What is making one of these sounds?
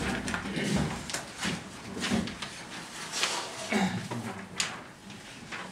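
A young man reads aloud from papers.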